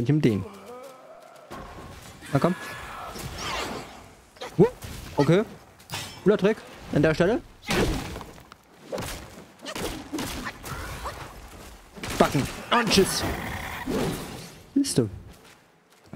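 A staff strikes a large beast with heavy thuds.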